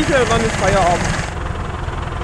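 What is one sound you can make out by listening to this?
A young man speaks close by.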